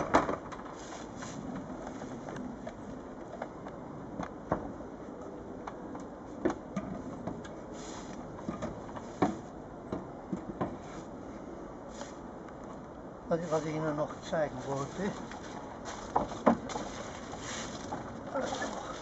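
Wooden boards knock and clatter as a hinged lid is lifted and lowered.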